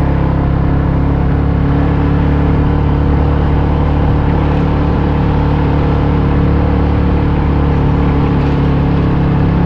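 Tyres roll over a concrete road.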